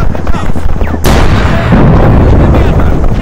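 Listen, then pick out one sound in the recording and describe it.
A loud explosion booms and rolls on.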